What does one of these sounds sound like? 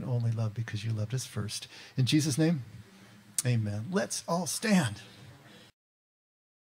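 An older man speaks with animation into a microphone.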